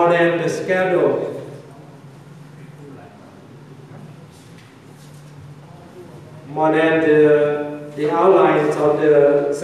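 An elderly man speaks calmly into a microphone, heard over a loudspeaker.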